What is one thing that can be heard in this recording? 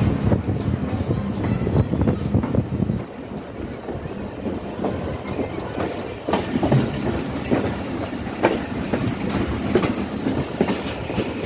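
Train wheels knock rhythmically over rail joints.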